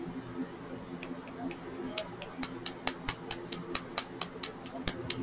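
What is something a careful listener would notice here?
A small tool clinks and taps against a glass jar.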